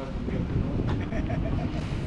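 An older man laughs.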